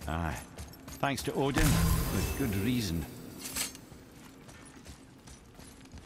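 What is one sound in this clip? Heavy footsteps crunch on loose gravel.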